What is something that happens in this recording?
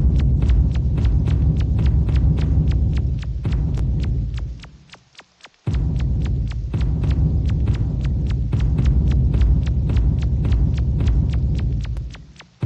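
Footsteps tap along quickly and evenly.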